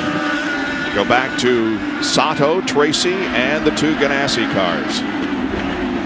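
Racing cars roar past one after another, their pitch rising and falling.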